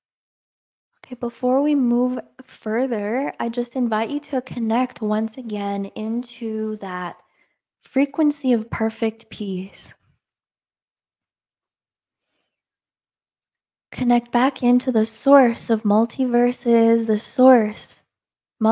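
A young woman speaks calmly and closely into a microphone, with pauses.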